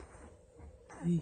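A puppy gives a short, high whine.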